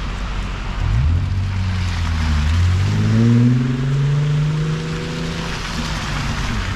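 A car engine revs up as it pulls away.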